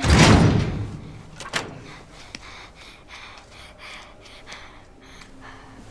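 A metal door handle clicks and rattles.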